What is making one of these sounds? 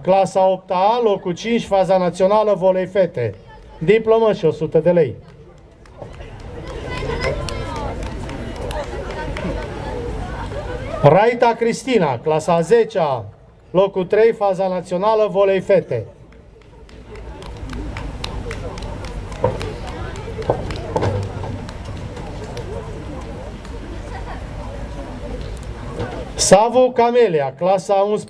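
A man reads out loudly into a microphone, heard through loudspeakers outdoors.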